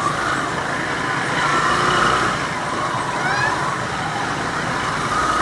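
Motorbike engines hum and putter nearby.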